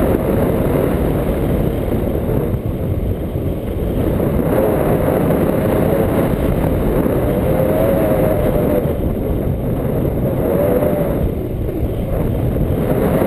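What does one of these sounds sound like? Wind roars loudly across the microphone.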